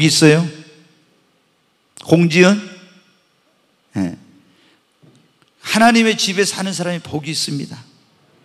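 A man speaks warmly into a microphone in short phrases, with pauses between them.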